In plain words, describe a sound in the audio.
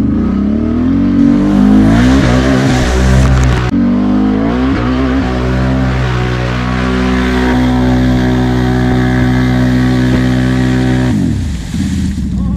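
An off-road vehicle's engine roars and revs hard.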